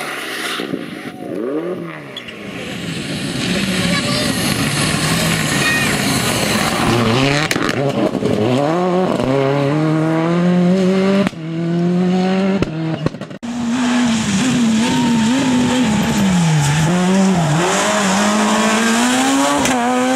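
A rally car engine revs hard, its pitch rising and falling as it roars past.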